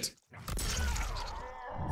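A heavy blow lands with a wet, crunching splatter.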